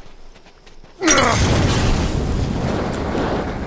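A loud explosion bursts close by.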